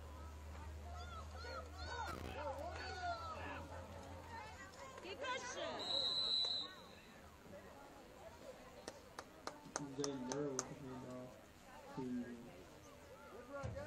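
Young players and spectators shout and cheer outdoors.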